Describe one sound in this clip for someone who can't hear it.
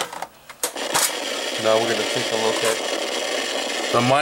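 Loud television static hisses steadily.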